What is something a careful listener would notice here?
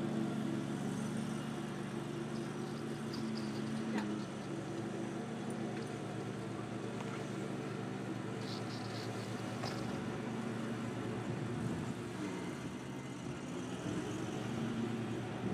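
A riding mower's engine hums steadily in the distance.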